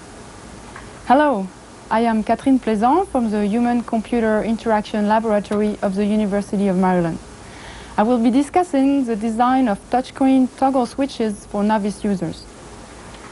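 A young man speaks calmly and clearly, close to a microphone.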